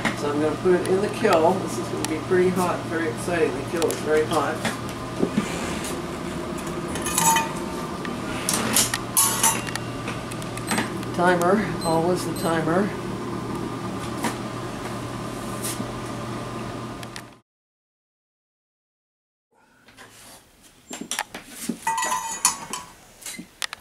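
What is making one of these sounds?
A metal kiln door clanks open and shut.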